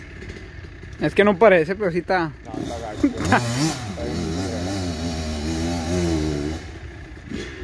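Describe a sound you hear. A dirt bike engine revs loudly and roars close by.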